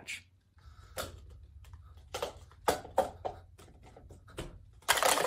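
Plastic cups clack quickly as they are stacked and unstacked.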